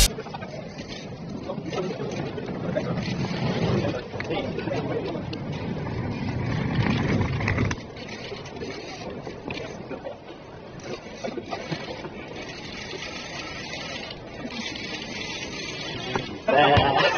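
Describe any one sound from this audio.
Men talk and murmur in the background, outdoors.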